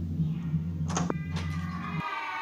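A door latch clicks as a handle is pressed.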